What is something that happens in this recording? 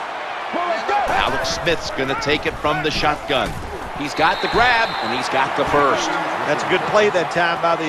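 A large crowd roars and cheers loudly.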